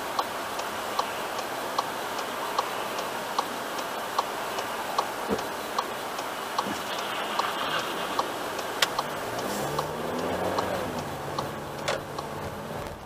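A turn signal ticks steadily inside a car.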